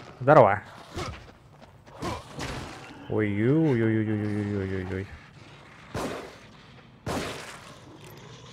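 Heavy blows land with wet, thudding impacts.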